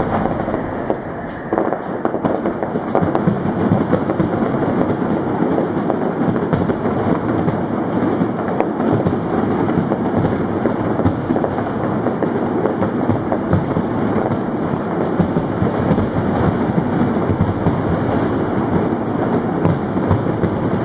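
A firework fountain hisses and roars steadily.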